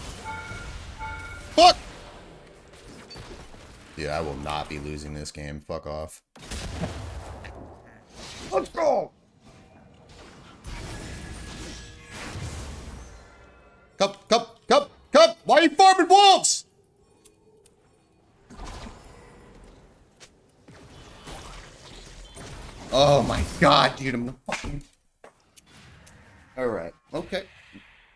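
A man talks with animation into a headset microphone.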